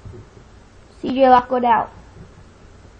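A young boy speaks briefly and loudly, close to the microphone.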